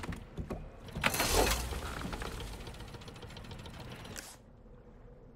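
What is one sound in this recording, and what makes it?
A small boat motor starts and runs.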